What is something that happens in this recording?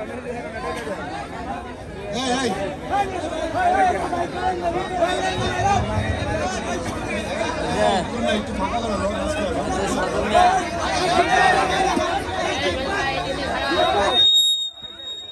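A man speaks with animation through a loudspeaker, echoing outdoors.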